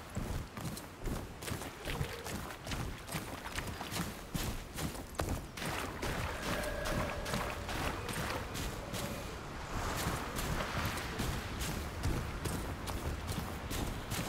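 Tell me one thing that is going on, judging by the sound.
Footsteps run quickly over stone and sand.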